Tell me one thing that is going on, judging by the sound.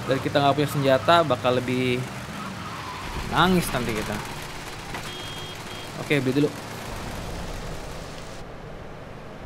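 Heavy rain patters steadily.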